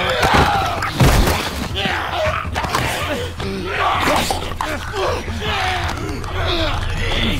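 Bodies thud and scuffle in a fight.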